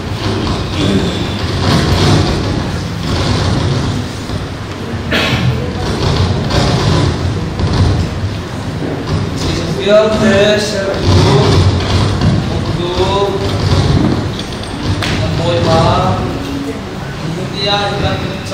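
A man speaks into a microphone, heard over loudspeakers in an echoing hall.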